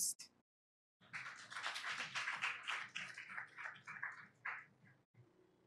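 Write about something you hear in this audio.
An audience applauds briefly.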